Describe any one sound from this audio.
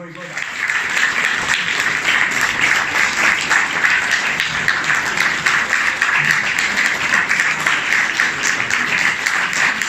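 An audience claps loudly and steadily.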